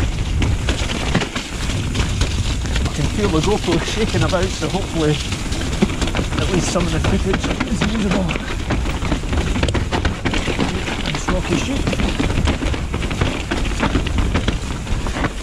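A bicycle's chain and frame rattle over bumps.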